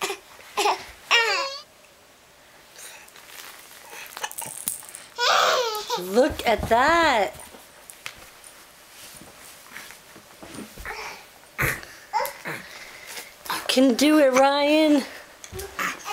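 A baby squeals and babbles up close.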